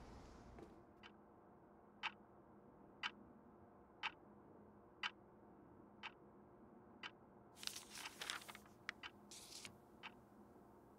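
A clock ticks steadily, once a second.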